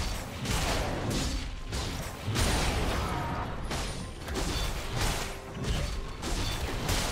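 Spell effects whoosh and crackle as game characters fight.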